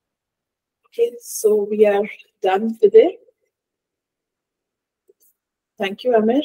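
A woman talks calmly through a microphone.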